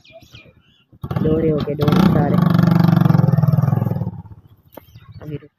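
A motorcycle engine starts and revs nearby.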